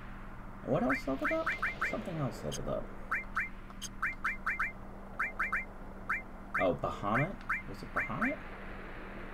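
Short electronic menu blips tick in quick bursts.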